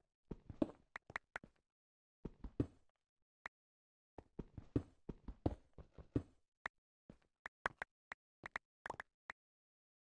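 Loose stone blocks pop off with short clicks.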